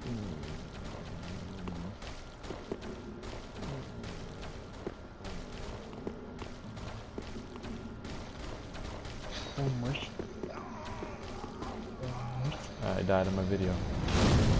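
Armoured footsteps thud on stone steps.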